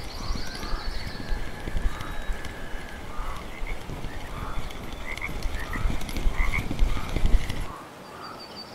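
A fishing reel whirs as its handle is cranked.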